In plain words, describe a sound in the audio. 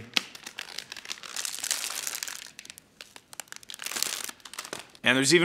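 Plastic film crinkles and rustles as it is peeled away.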